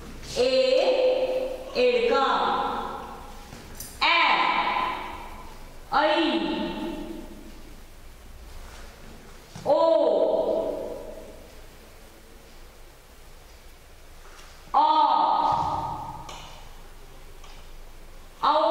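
A woman recites slowly in a drawn-out, sing-song voice close by, with short pauses.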